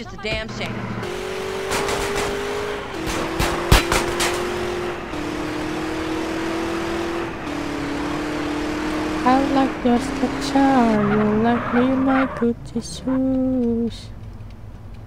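A car engine roars as the car speeds along a road.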